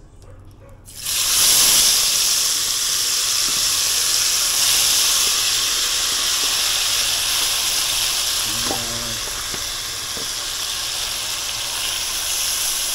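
Food hits hot oil in a pot and sizzles loudly and steadily.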